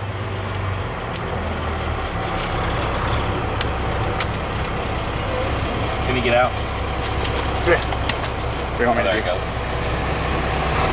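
A vehicle engine idles with a low, steady rumble.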